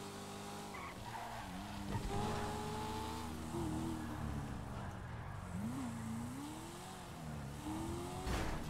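A car engine revs and whines, rising and falling in pitch.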